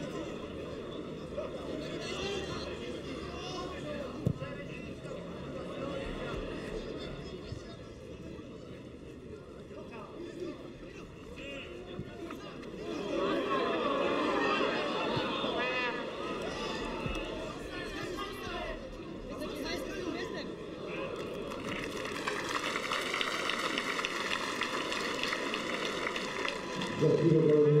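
A football crowd cheers and chants in an open stadium.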